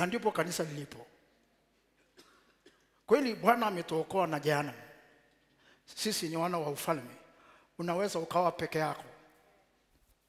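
A man preaches with animation through a headset microphone, in short loud bursts with pauses.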